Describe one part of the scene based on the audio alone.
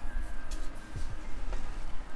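Playing cards rustle and flick softly between hands.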